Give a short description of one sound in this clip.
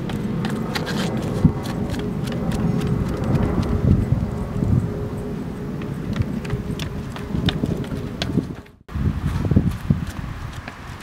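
Sneakers thud and scuff on concrete steps as a man runs.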